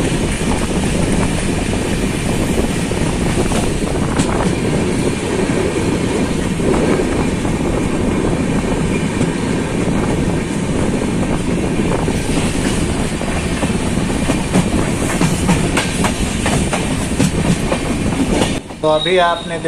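A train rumbles and clatters loudly along the tracks, heard up close in rushing wind.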